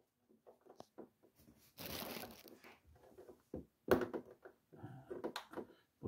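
A plastic connector clicks as it is pulled apart.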